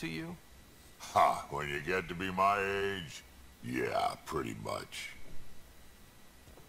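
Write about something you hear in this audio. A man with a deep, gravelly voice speaks slowly.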